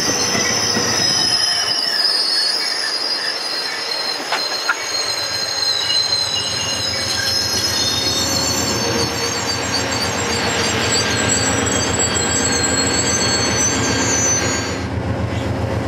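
Train wheels squeal high against the rails.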